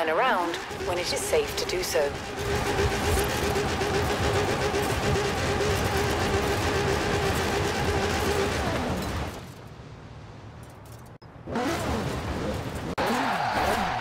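Tyres screech as a car drifts across loose ground.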